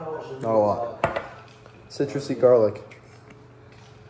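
A plastic lid clicks open on a spice jar.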